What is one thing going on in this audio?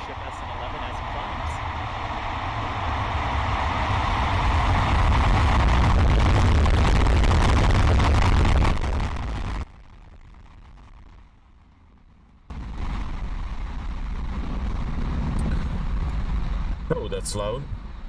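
A rocket engine roars loudly and steadily through a broadcast.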